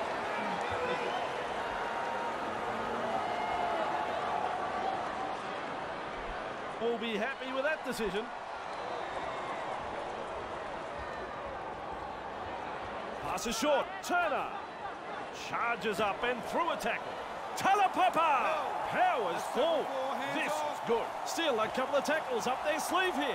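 A large stadium crowd cheers and murmurs steadily.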